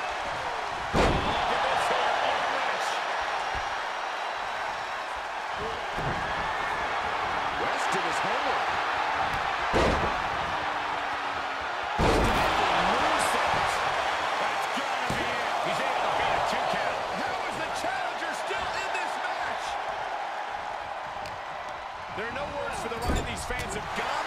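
Heavy thuds of bodies slamming onto a wrestling mat ring out.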